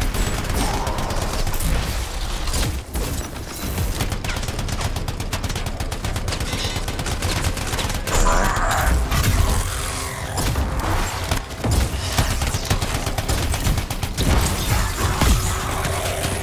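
Rapid gunfire rattles continuously.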